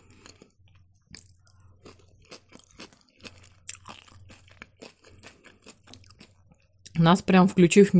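A woman chews food with wet, smacking sounds close to a microphone.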